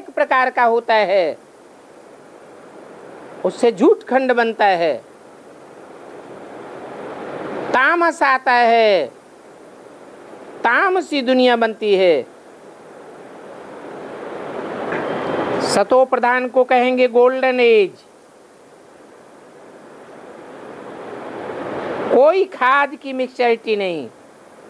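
An elderly man reads out in short phrases with pauses, close by.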